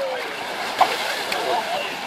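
A young man jumps and splashes into water.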